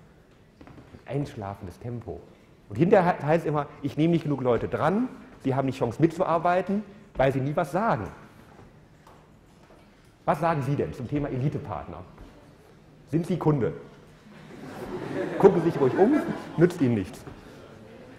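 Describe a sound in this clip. A middle-aged man lectures through a microphone, speaking with animation and pausing often.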